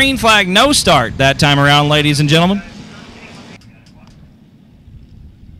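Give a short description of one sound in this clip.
Race car engines roar around a dirt track.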